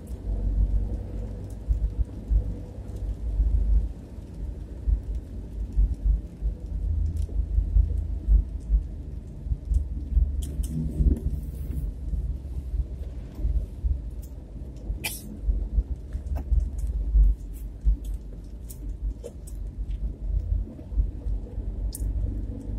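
Rain patters and ticks on a windscreen.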